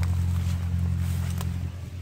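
Leaves rustle as a plant is handled.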